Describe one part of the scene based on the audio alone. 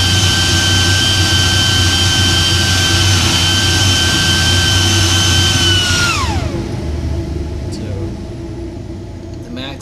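Air rushes loudly out of a duct with a steady high whine that winds down and fades.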